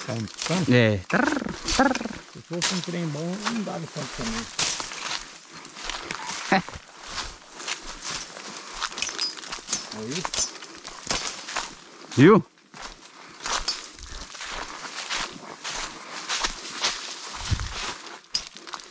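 Dry grass and twigs rustle against legs while walking.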